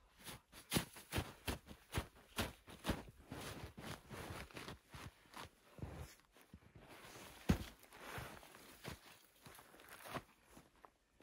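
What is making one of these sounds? Boots scrape and crunch on rock and snow as a person climbs.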